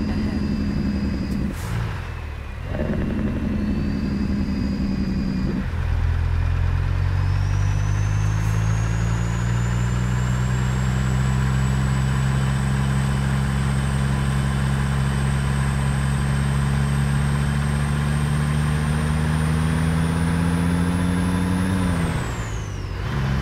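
A truck's diesel engine rumbles and revs up through the gears.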